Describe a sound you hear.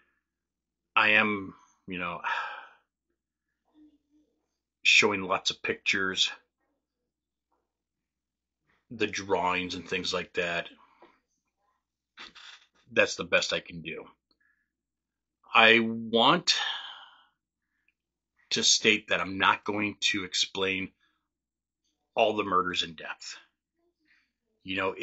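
A middle-aged man speaks calmly and closely into a microphone, in bursts with pauses.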